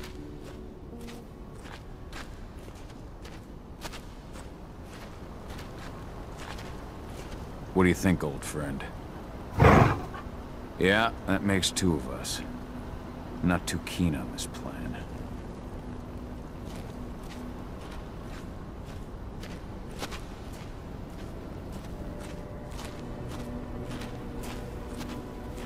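Footsteps tread on wet, rocky ground.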